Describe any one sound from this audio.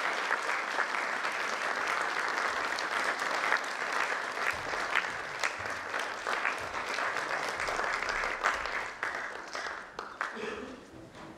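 An audience applauds in a large echoing hall, then the clapping fades away.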